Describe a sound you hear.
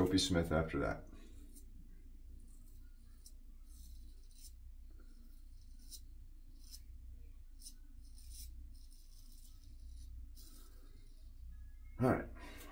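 A razor blade scrapes softly against stubble.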